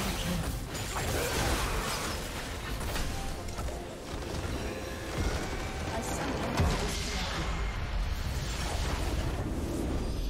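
Spells and attacks crackle and boom in a fierce battle.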